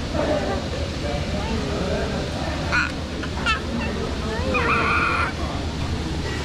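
A toddler babbles.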